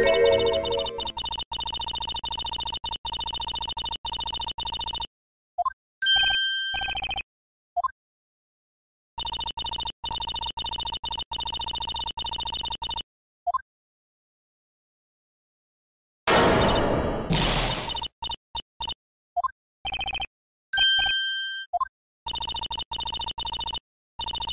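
Rapid electronic beeps tick in quick bursts, like letters typing out.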